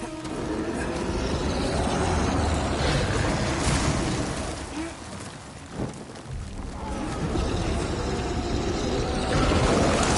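A flaming blade roars and crackles softly.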